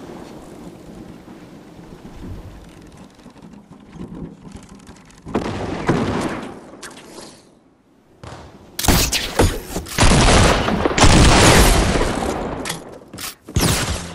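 Wooden building pieces snap into place with quick clattering knocks.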